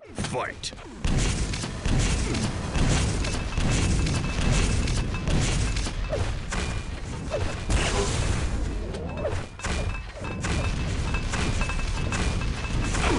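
Rockets and guns fire in a fast-paced video game.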